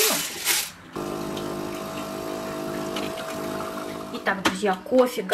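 A coffee machine hums steadily as it pours coffee.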